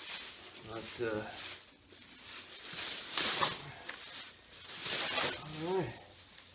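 Plastic wrapping crinkles and rustles loudly as it is pulled off.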